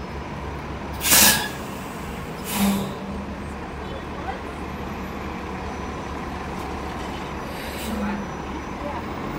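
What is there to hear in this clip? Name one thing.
Air hisses sharply from a bus in short bursts.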